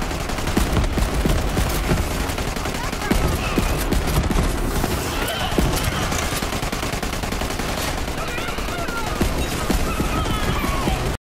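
A rapid-fire gun shoots in bursts.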